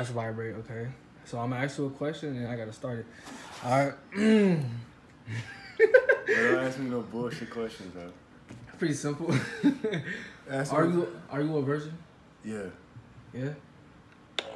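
A young man talks and laughs close by with animation.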